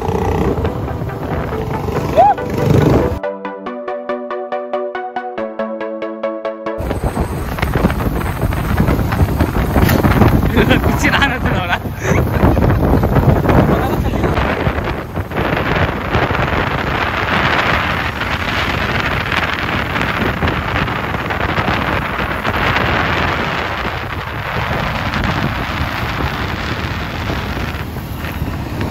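A motorcycle engine drones steadily while riding.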